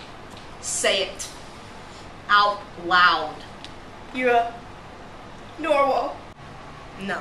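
A teenage girl talks with animation close by.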